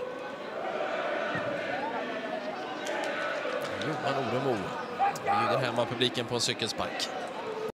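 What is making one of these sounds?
A stadium crowd murmurs and chants in the distance.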